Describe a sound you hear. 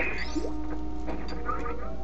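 Short electronic zaps of shots fire.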